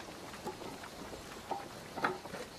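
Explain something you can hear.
Logs clatter as a man stacks firewood.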